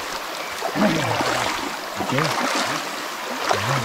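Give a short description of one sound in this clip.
Water splashes as a man wades through a stream.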